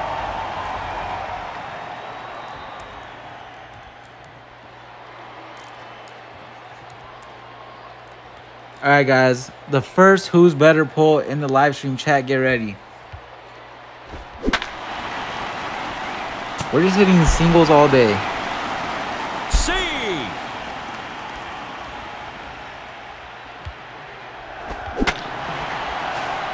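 A stadium crowd murmurs and cheers in the background.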